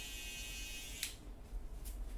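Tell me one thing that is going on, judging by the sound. Electric hair clippers buzz close by.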